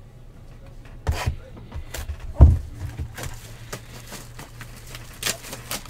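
Plastic wrapping crinkles as hands tear at a box.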